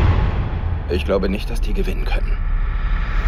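A man speaks in a low, tense voice.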